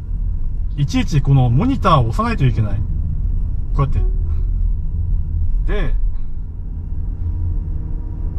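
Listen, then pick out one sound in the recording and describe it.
A car's engine and tyres rumble low and steady on the road.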